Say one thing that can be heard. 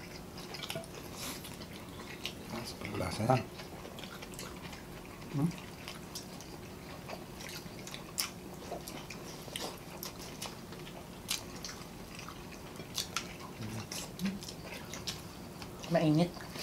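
Chewing and lip smacking sound close up.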